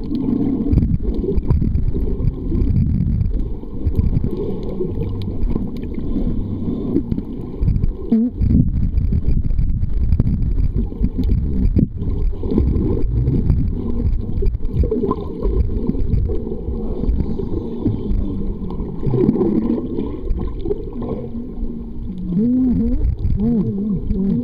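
Water sloshes and rumbles, muffled as if heard underwater.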